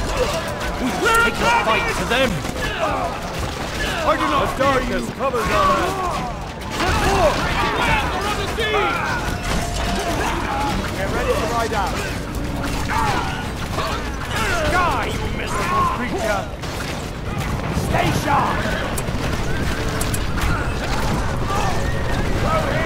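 Swords clash in a battle.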